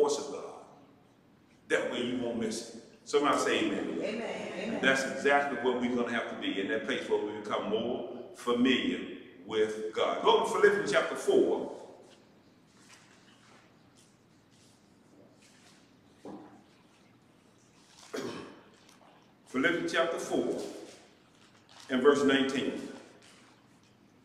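A man speaks through a microphone in a measured, preaching manner, with long pauses.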